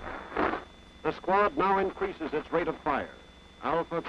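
A man calls out loudly close by.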